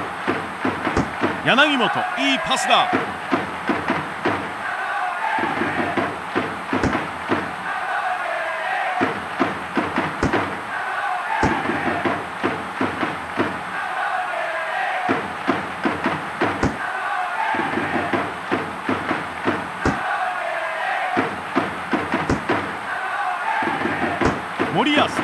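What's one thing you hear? A football is kicked with sharp thuds now and then.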